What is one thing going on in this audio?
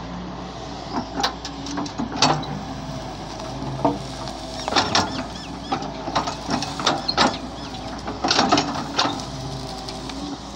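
An excavator bucket crunches and snaps through brush and branches.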